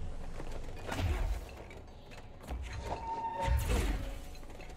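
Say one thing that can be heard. Furniture crashes and clatters as it is flung about.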